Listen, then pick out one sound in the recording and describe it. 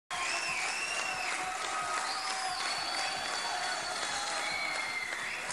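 A large crowd cheers loudly.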